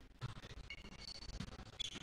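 A volleyball is spiked with a sharp smack in a large echoing hall.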